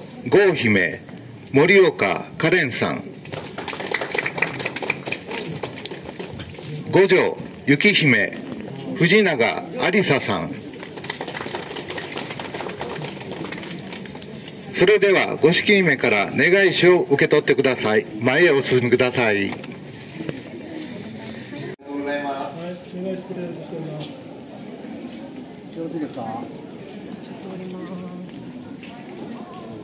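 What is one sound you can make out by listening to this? A crowd murmurs and chatters in the street.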